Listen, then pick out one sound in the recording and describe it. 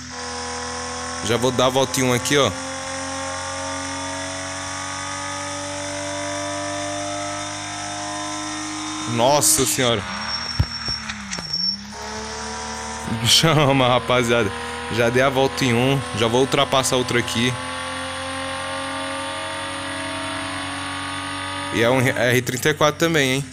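A racing game's sports car engine drones at speed.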